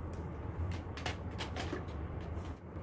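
Small plastic items clatter on a hard floor.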